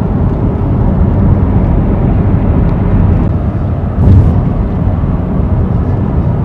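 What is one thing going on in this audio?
A car's engine and tyres rumble steadily from inside the car.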